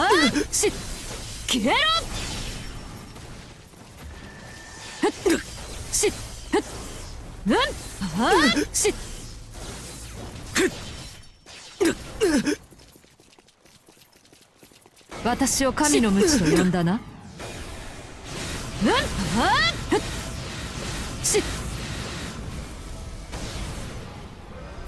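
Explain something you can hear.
Swords slash and clash with sharp impacts.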